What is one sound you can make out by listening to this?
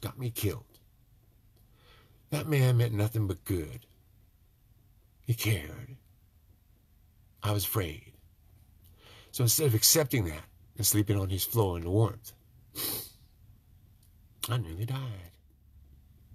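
An older man speaks close to the microphone, in short, emphatic bursts with pauses between.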